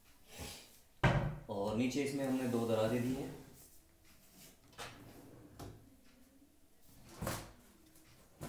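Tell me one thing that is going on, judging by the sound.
A wooden cabinet door bumps and swings open.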